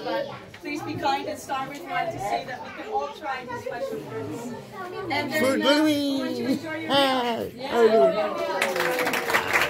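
Several women talk with animation close by.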